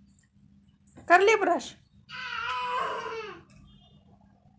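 A toddler girl squeals and babbles loudly nearby.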